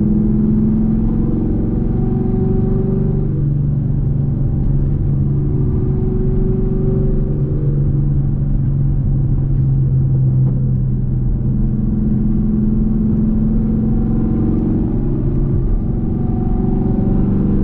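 A car engine hums loudly from inside the cabin, its pitch rising and falling with speed.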